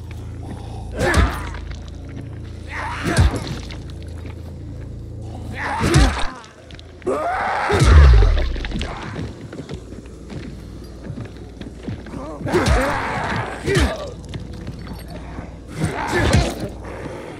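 A wooden club thuds against a body.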